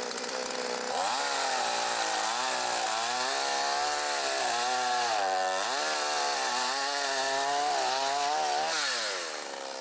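A chainsaw cuts through a wooden log.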